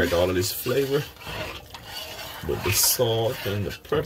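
Water splashes softly in a metal pot as a hand stirs it.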